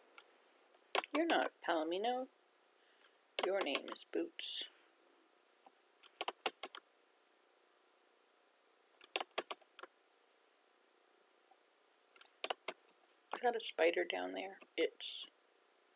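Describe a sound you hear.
An elderly woman speaks calmly, close to a microphone.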